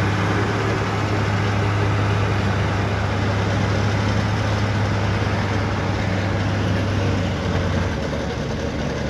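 A loader's diesel engine rumbles steadily nearby as it drives away.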